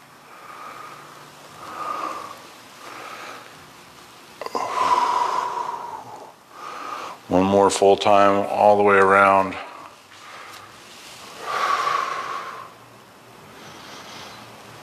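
A swung rope whooshes through the air again and again.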